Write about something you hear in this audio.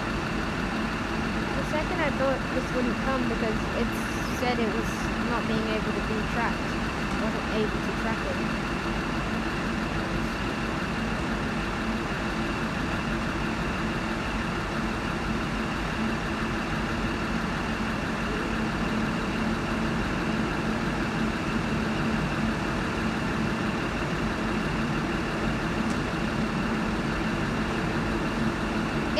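A diesel railcar engine idles with a steady low rumble and hum.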